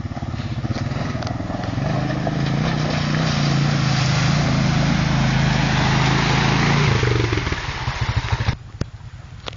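Water splashes and sprays loudly under tyres.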